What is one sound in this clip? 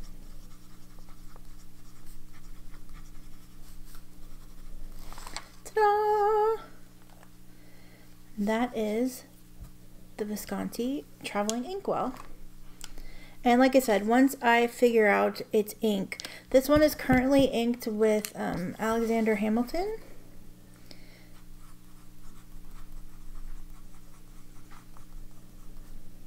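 A pen nib scratches softly on paper.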